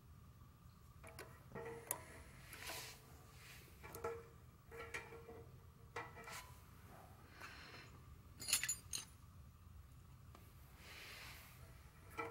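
Metal tools click and clink against an engine part.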